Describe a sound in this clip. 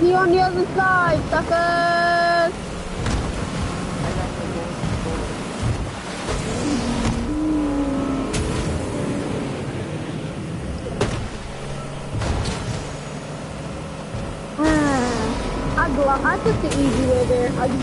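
A motorboat engine hums steadily.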